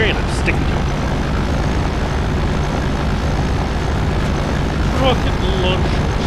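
An armoured vehicle's engine rumbles steadily as it drives.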